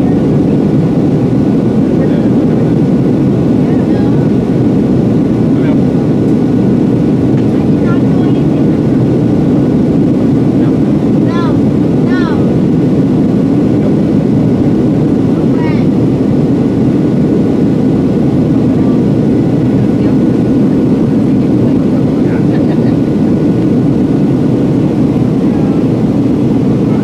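A jet engine roars steadily inside an aircraft cabin.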